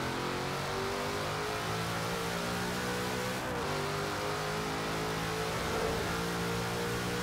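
A powerful car engine roars steadily as it accelerates.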